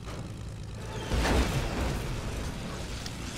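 A plane crashes with a loud bang.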